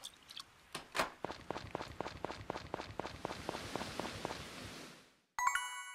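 Footsteps tap quickly on the ground.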